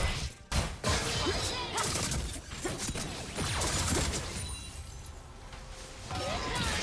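Game spell effects and weapon hits crackle and clash in a fight.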